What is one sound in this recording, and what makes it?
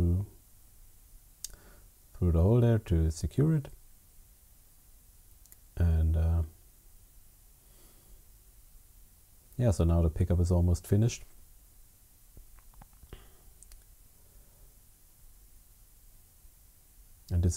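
Small plastic parts click and rustle as they are handled.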